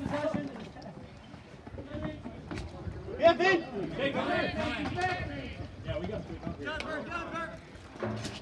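Young players shout and cheer nearby outdoors.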